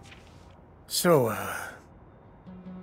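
A man speaks hesitantly.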